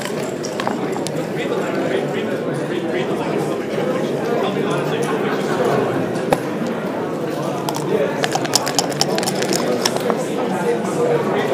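Dice rattle and clatter onto a wooden board.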